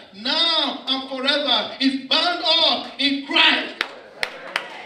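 A man preaches loudly and passionately into a microphone.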